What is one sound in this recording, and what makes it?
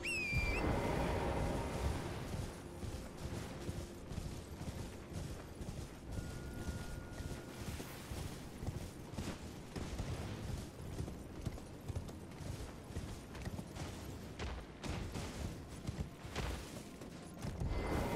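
Footsteps run quickly through grass and over ground.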